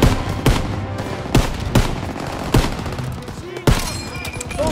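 Rifle shots ring out sharply, one after another.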